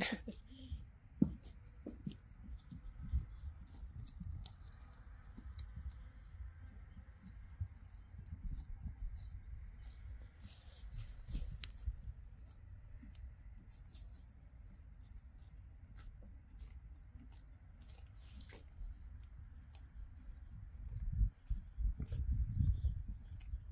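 A horse tears and munches grass close by.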